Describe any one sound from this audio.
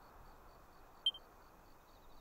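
A menu blips once.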